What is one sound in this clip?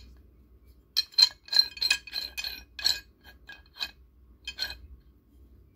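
A wrench's knurled nut ratchets as a thumb rolls it.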